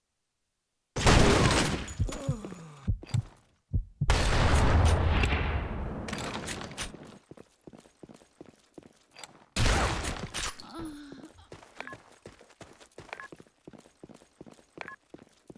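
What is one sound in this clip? Gunshots ring out in loud, quick bursts.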